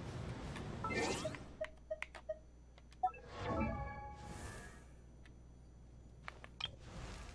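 Soft chimes and whooshes sound as a menu opens.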